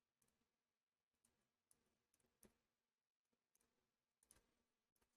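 A pen taps and scratches on a hard surface.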